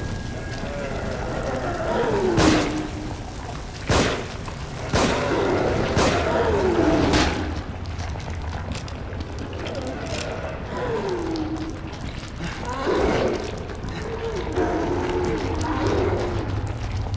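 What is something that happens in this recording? A monster growls and moans with a falling, guttural voice.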